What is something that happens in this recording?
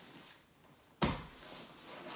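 Something thumps onto a mat.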